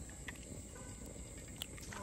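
An egg cracks and drops onto a hot griddle.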